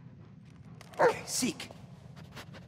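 A dog whines loudly.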